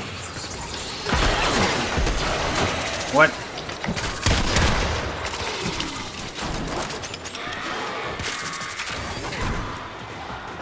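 A game's weapon fires in bursts with loud blasts.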